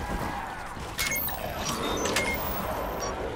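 A weapon clicks and clacks as it is reloaded.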